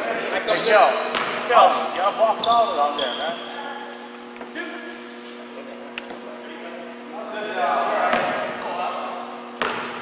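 A man talks loudly in a large echoing hall.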